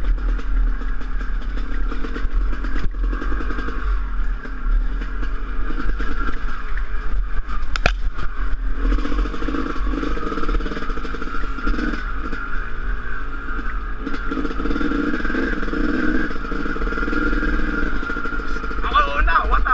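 A dirt bike engine revs and buzzes up close.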